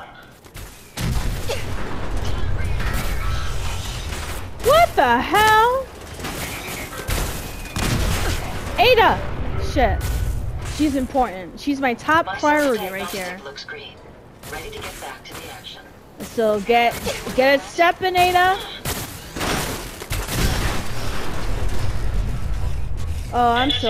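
A heavy gun fires in rapid, rattling bursts.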